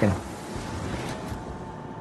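A shell splashes into the sea.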